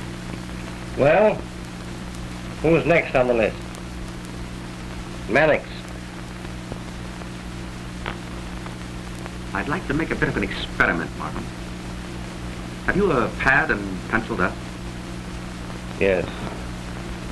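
A middle-aged man speaks in short phrases, heard over an early film soundtrack with hum.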